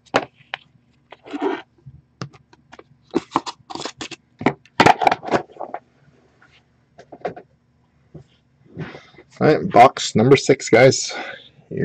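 Cardboard and plastic packaging rustles and clicks as it is handled up close.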